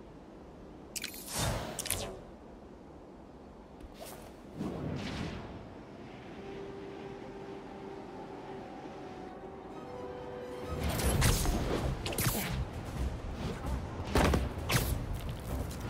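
Loud whooshes sweep by during a fast dive and swinging between buildings.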